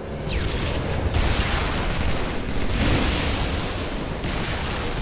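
Gunfire blasts and roars loudly.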